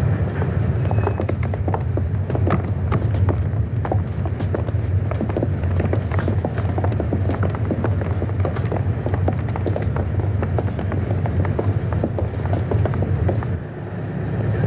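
Footsteps clatter on a wooden gangway.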